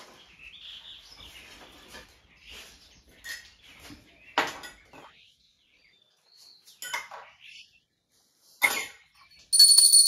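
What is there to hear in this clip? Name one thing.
Small metal dishes clink as they are set down.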